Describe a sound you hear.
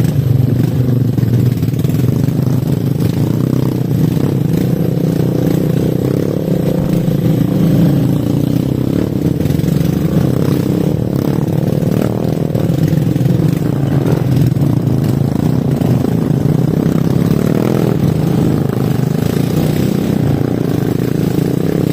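Motorbike tyres rumble over a rough dirt track.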